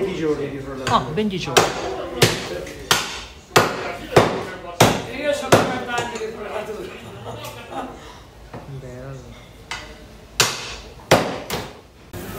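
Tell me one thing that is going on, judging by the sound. A cleaver chops hard through meat and bone in sharp blows.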